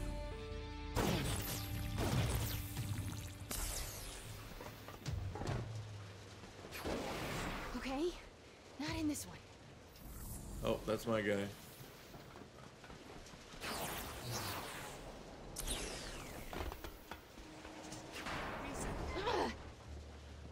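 Crackling energy bursts whoosh and sizzle repeatedly.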